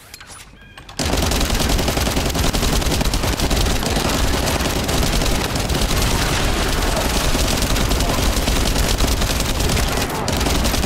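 Blasts and metal clashes roar loudly in a close fight.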